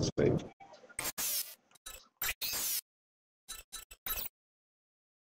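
Short electronic blips sound as menu options are selected.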